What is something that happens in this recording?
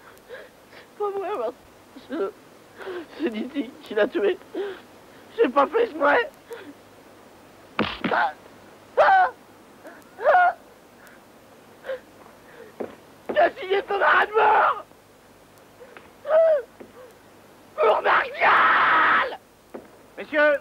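A middle-aged man speaks with emotion, at times crying out.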